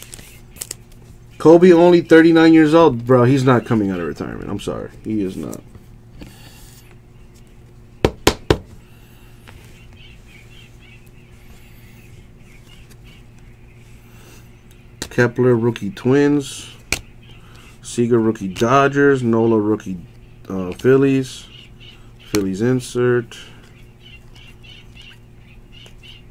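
Trading cards slide and rustle between fingers close by.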